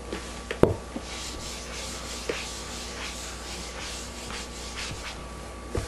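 A felt eraser wipes across a whiteboard with a soft rubbing swish.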